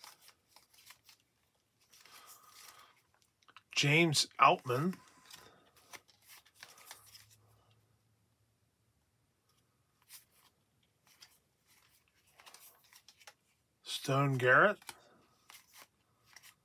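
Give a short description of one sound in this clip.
Trading cards slide and flick against each other in the hands.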